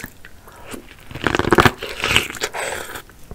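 A woman bites into corn on the cob close to a microphone.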